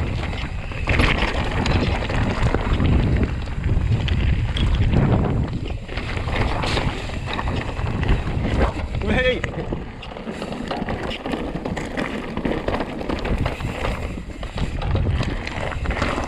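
Bike tyres rumble and crunch over a rough gravel trail.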